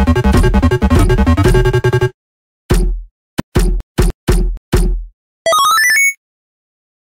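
Bright electronic chimes and pings play quickly.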